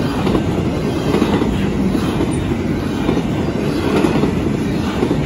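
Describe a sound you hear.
A freight train rumbles past close by, its wheels clattering on the rails.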